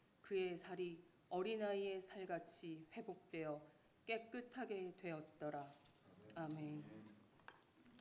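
A young woman reads out calmly through a microphone in a room with a slight echo.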